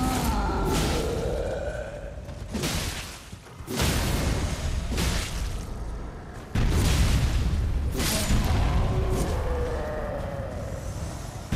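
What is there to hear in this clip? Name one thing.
A huge creature groans with a deep, wavering voice.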